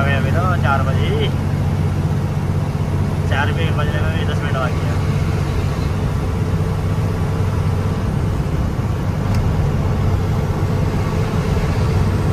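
A vehicle engine drones steadily at a low pitch.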